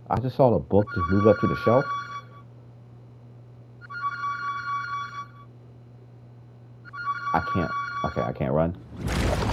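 A telephone rings in short bursts.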